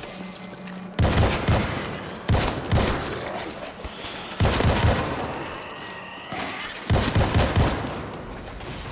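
Rapid gunfire rings out in loud bursts.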